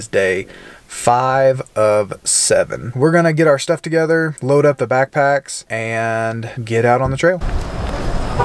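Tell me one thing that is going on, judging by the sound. A young man talks calmly and close up.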